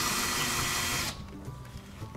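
A cordless screwdriver whirs loudly.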